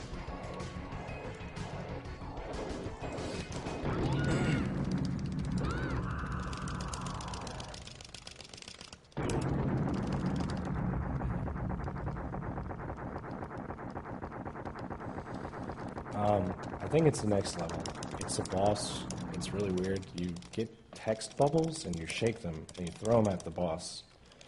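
Upbeat electronic game music plays with sound effects.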